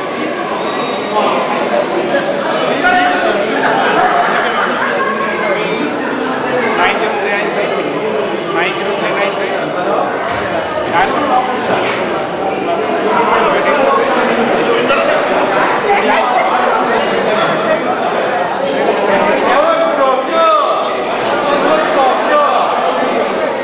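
A crowd of men and women chatters in a large echoing hall.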